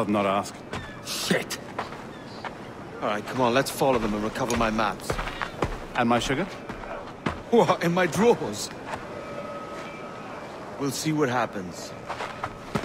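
A second man answers gruffly.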